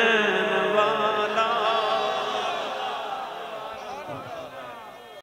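A man chants loudly through a microphone.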